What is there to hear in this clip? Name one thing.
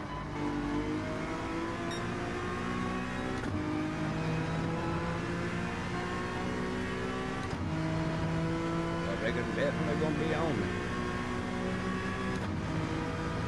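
A racing car engine revs high and rises in pitch through the gears.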